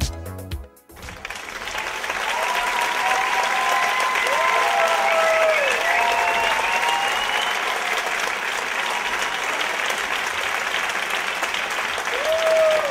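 Dancers' feet shuffle and step on a wooden stage.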